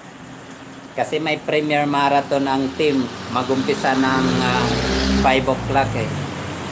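A woman speaks close by with animation.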